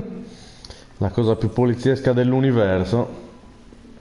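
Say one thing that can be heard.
A man talks animatedly close to a microphone.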